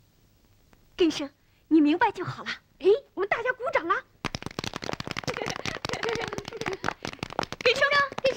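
Children talk and laugh excitedly.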